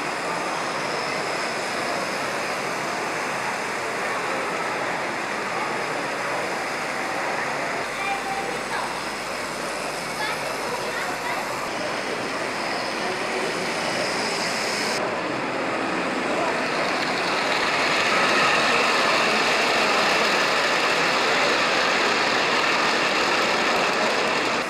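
Model train wheels rattle and whir steadily along the track.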